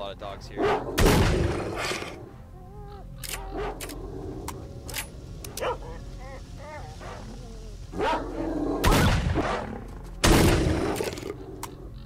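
A shotgun fires loud booming shots that echo away.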